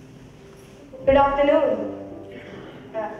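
A young woman sings out loudly in a large hall.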